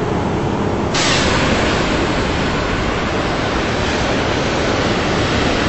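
A jet airliner roars loudly as it flies by outside.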